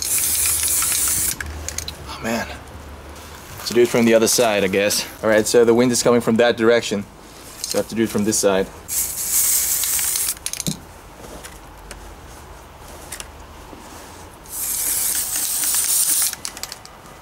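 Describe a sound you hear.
An aerosol can sprays with a loud, steady hiss in short bursts.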